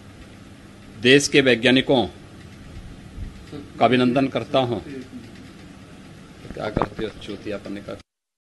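A middle-aged man speaks calmly into a close microphone, in short bursts with pauses.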